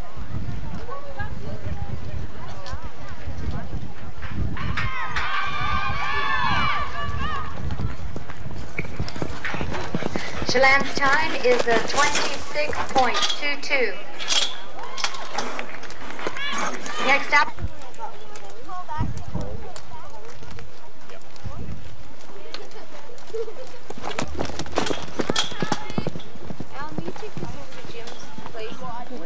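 A horse gallops, its hooves thudding on soft dirt.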